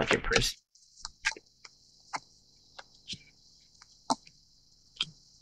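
Cards tap and rustle as they are handled.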